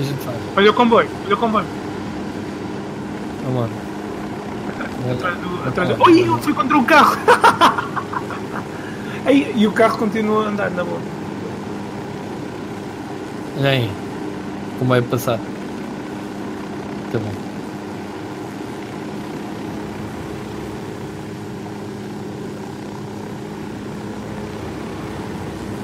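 A helicopter's rotors and engine drone steadily.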